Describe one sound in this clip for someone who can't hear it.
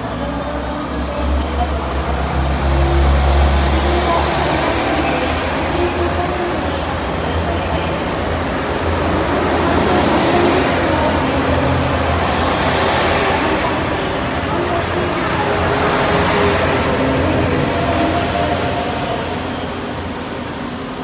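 A train's brakes squeal with a high, rising whine.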